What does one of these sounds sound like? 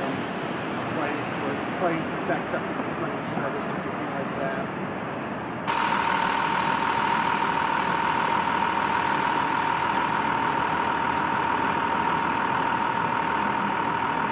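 Traffic rumbles along a city street outdoors.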